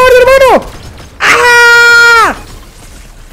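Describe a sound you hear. A young man yells loudly and long into a close microphone, his voice falling at the end.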